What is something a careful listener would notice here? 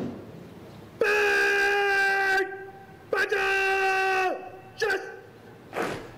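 A man shouts long, drawn-out parade commands outdoors.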